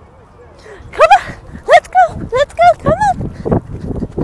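A small dog barks in short, high yaps.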